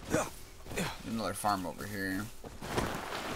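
A young man talks into a microphone.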